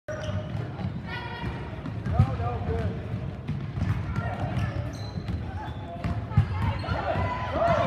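Basketball shoes squeak sharply on a gym floor.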